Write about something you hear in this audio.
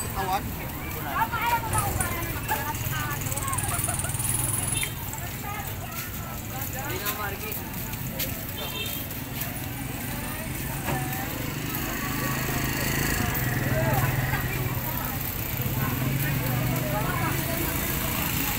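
Men and women chatter nearby on a busy street.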